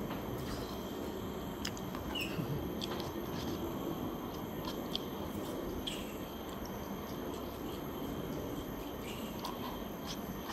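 Plastic utensils scrape and tap against a plastic bowl of noodles.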